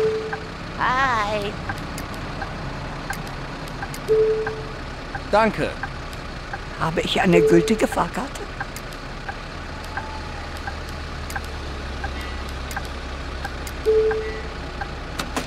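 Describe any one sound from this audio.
A ticket machine beeps briefly a few times.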